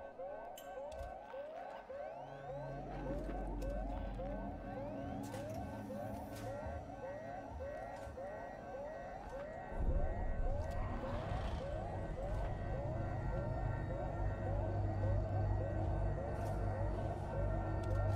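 An electronic scanner beeps in quick, rising chirps.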